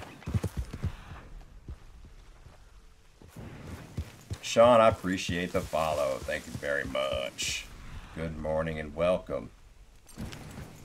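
A horse's hooves thud as it walks on grass.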